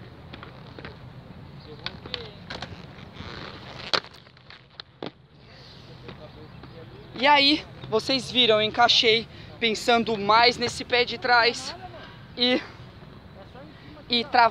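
Inline skate wheels roll and scrape on concrete.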